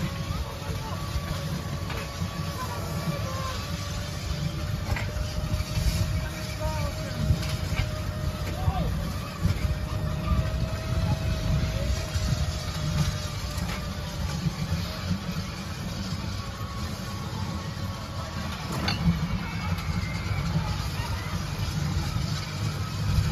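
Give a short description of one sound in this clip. A small ride car rumbles along a guided track.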